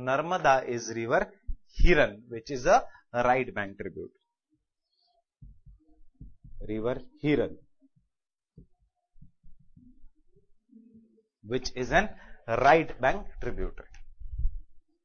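A man speaks calmly and clearly, lecturing.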